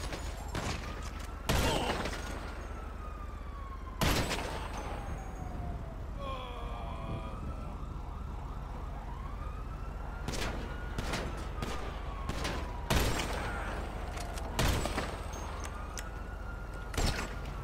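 A police car siren wails up and down.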